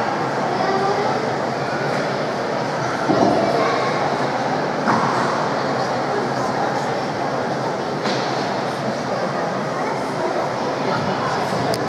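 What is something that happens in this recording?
A man talks with animation nearby, in a large echoing hall.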